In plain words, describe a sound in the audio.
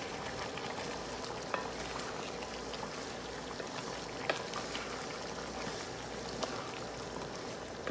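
A wooden spatula scrapes and stirs food in a pot.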